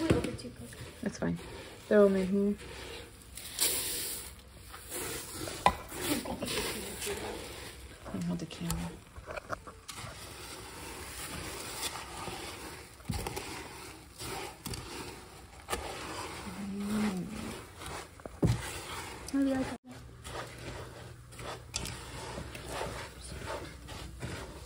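A spatula scrapes and stirs thick sticky cereal in a metal pot.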